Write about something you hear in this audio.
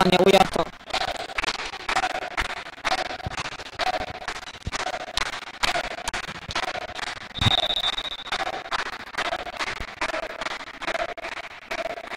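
A volleyball is struck with sharp thuds in a large echoing hall.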